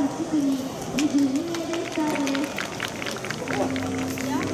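Spectators clap in a quick rhythm.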